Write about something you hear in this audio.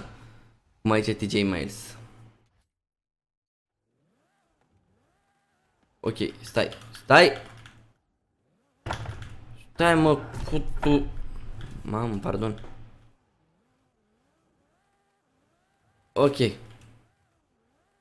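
A young man talks with animation close to a microphone, in short bursts.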